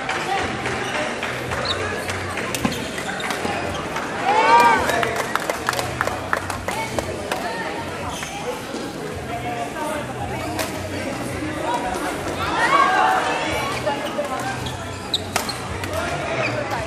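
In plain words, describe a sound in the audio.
A large crowd chatters in a big echoing hall.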